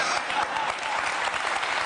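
A young woman laughs on a microphone.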